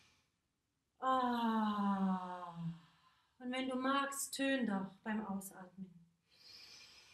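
A young woman sings long, slowly falling notes close by.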